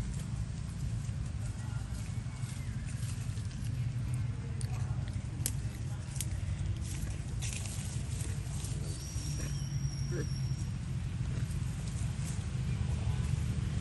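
Dry leaves rustle and crackle as small monkeys shift on the ground.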